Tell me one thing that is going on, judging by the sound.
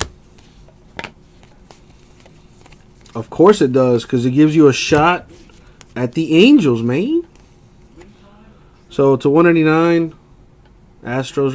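Trading cards softly rustle and slide as they are shuffled by hand.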